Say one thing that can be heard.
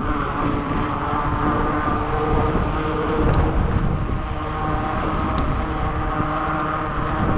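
Wind buffets the microphone in loud gusts.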